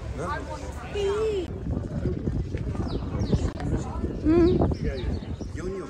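Men and women chat in passing nearby, outdoors.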